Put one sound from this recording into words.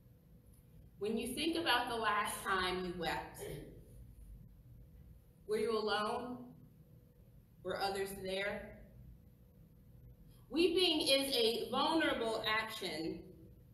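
A woman speaks calmly and slowly, in short phrases.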